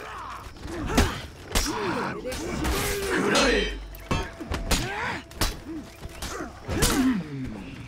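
Metal blades clash and ring sharply several times.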